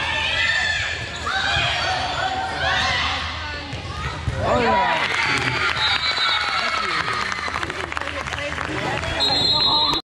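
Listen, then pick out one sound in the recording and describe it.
Young girls shout and cheer in a large echoing hall.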